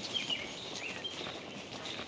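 Birds chirp and twitter nearby.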